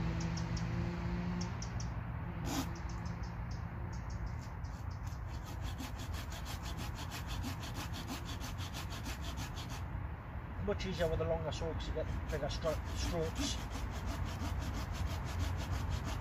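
A hand saw rasps back and forth through wood in quick, even strokes.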